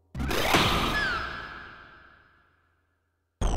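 A sword strikes a target with a sharp clash.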